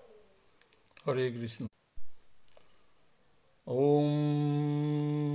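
An elderly man chants in a low, steady voice close by.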